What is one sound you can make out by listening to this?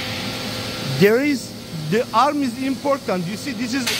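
A middle-aged man talks close to the microphone.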